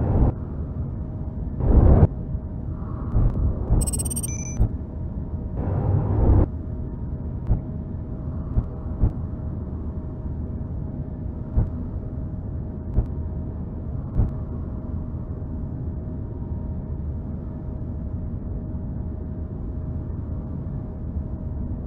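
A drill grinds with a steady low rumble.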